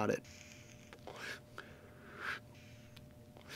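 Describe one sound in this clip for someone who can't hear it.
A man exhales with a soft breathy puff.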